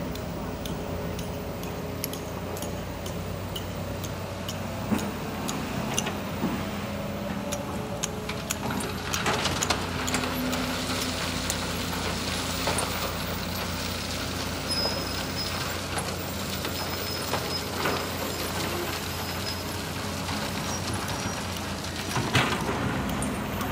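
A diesel engine rumbles steadily nearby.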